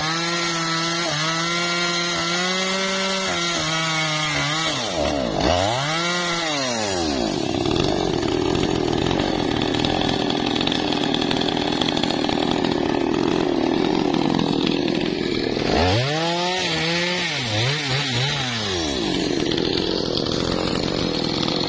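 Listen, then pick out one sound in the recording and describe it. A chainsaw engine runs close by, revving up and down again and again.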